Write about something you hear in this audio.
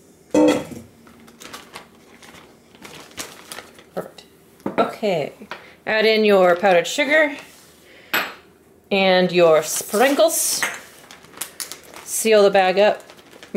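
A plastic bag crinkles and rustles as it is handled.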